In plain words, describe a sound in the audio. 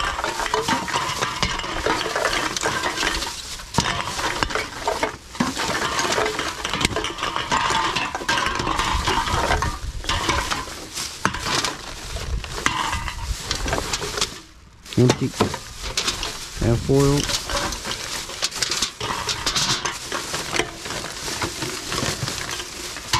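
Aluminium cans clink and clatter against each other.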